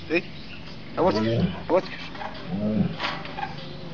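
A lion growls up close.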